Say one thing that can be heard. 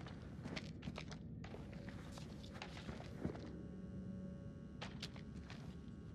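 Paper rustles as a note is picked up.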